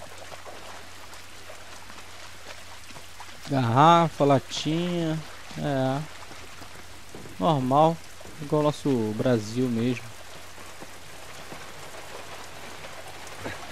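Footsteps crunch slowly on rough ground.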